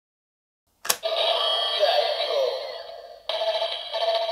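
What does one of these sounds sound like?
A recorded man's voice shouts out through a toy's small speaker.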